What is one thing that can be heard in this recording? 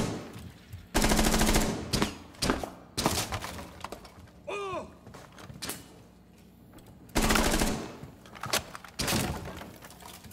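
Rapid bursts of automatic gunfire ring out close by.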